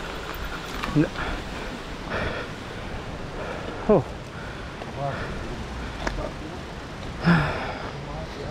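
A man calls out nearby outdoors.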